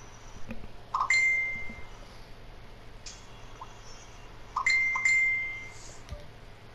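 A video game menu chimes as a selection is confirmed.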